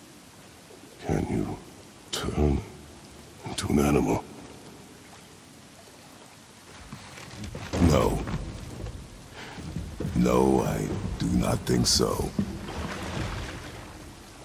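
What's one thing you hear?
A man speaks in a deep, low, gruff voice, close by.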